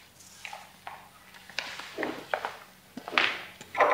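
Footsteps sound on a hard floor.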